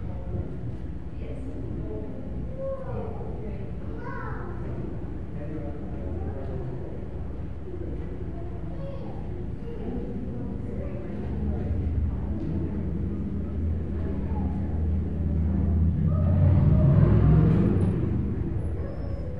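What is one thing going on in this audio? A man speaks calmly from a distance in a large echoing hall.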